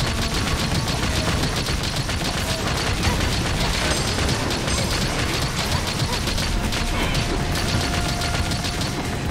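Explosions burst and crackle against a large beast.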